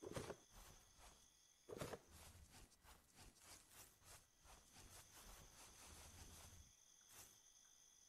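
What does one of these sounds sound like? Footsteps crunch on grass at an even pace.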